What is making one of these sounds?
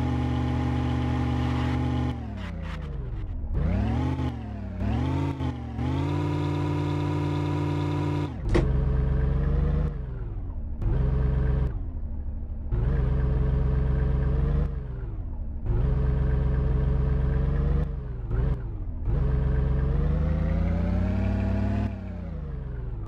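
An off-road vehicle's engine revs and strains, rising and falling in pitch.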